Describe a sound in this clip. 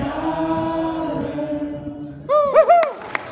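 An older woman sings through a microphone in an echoing hall.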